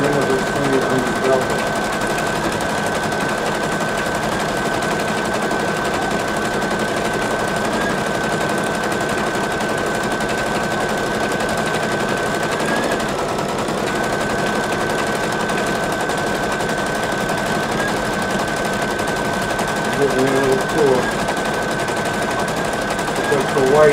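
An embroidery machine whirs steadily with a high hum as its needle stitches rapidly.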